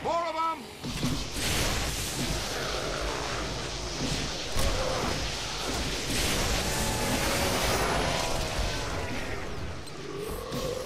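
Energy beams crackle and hum loudly as they fire.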